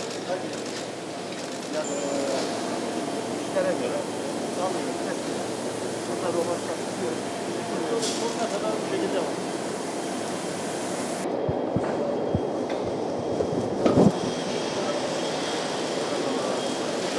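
A crowd of men talk and murmur in a large echoing hall.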